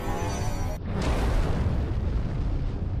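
A ship explodes with a loud blast.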